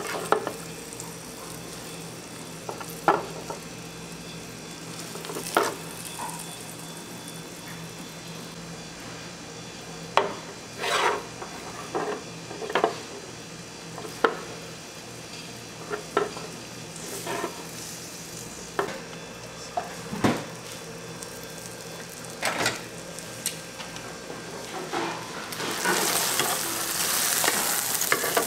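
An omelette sizzles on a hot pan.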